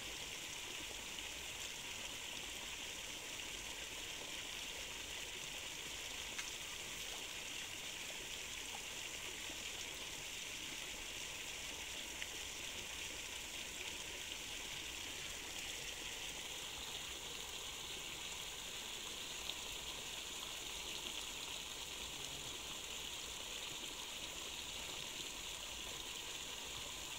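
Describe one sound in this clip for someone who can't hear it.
Water splashes and swirls as people wade through a river.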